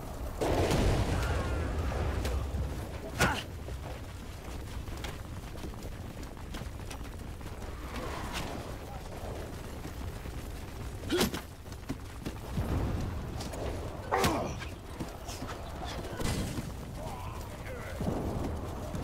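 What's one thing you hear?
The din of a large battle rumbles steadily.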